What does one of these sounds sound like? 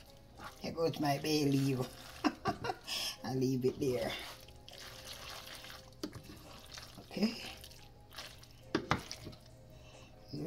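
Thick sauce squelches as pasta is stirred.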